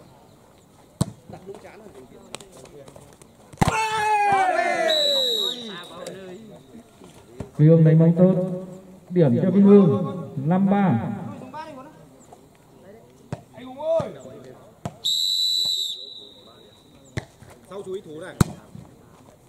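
A ball is kicked with sharp thumps.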